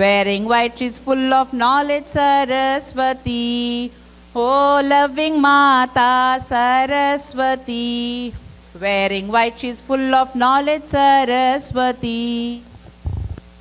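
A young girl sings a melodic song loudly.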